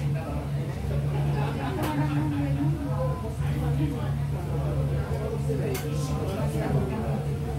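Dishes and utensils clatter on a counter.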